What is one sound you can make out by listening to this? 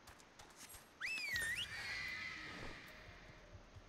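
A bright magical chime rings out with a rising and falling shimmer.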